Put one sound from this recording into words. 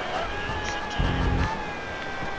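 Tyres rumble loudly over kerbs.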